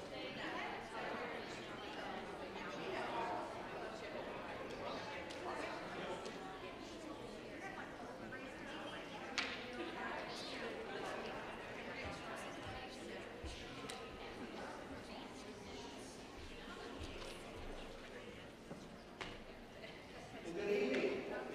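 A congregation murmurs and chatters softly in a large echoing hall.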